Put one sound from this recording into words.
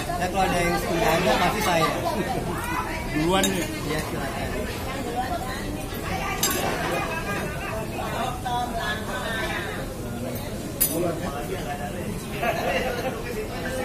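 Cutlery and glasses clink on a table.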